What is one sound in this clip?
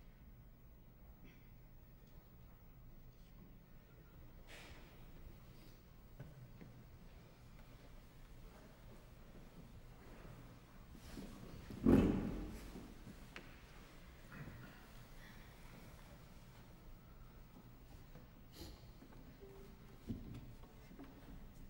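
A string quartet plays softly in a quiet hall.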